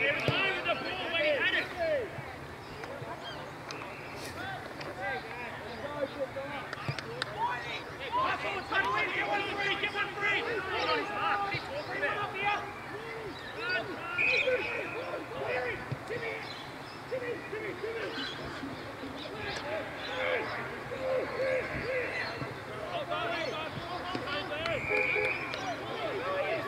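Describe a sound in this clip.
Young men shout and call out to each other outdoors, at a distance.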